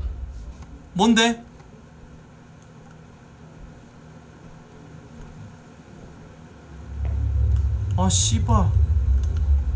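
A man speaks in short bursts close to a microphone.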